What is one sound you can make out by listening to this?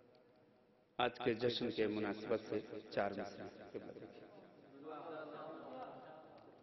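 A man speaks loudly and with feeling into a microphone, heard through a loudspeaker.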